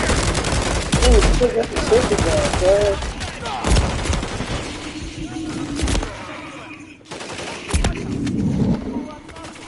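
Gunshots and explosions crack and boom loudly in quick bursts.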